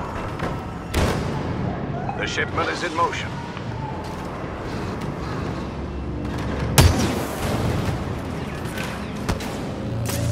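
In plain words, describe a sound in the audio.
Laser blasters fire in sharp, loud shots.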